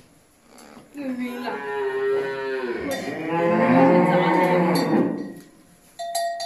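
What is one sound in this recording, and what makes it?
A calf bleats loudly close by.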